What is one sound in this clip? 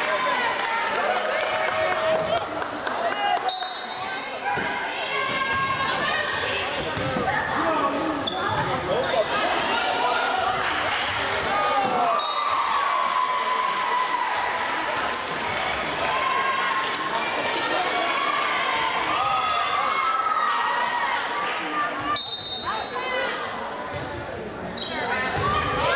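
Spectators talk and cheer in a large echoing hall.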